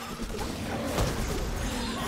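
A sharp blast of a spell hits.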